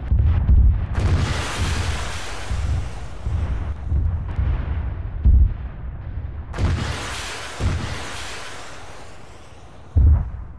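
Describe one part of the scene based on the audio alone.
A jet engine roars past in loud, rushing bursts.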